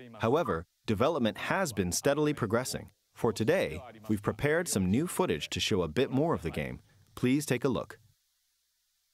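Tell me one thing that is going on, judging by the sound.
A man speaks calmly into a microphone, heard through a loudspeaker.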